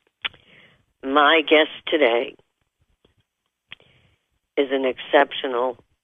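A woman speaks expressively, close to a microphone.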